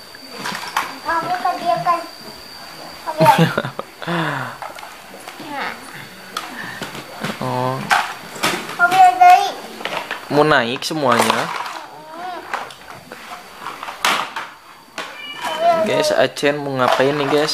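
A young child talks and babbles close by.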